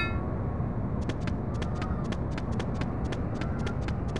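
Light footsteps patter quickly on stone.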